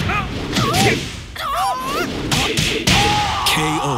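Heavy punches land with loud, sharp thuds.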